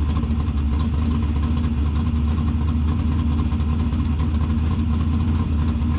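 A race car engine idles with a deep, loud rumble close by.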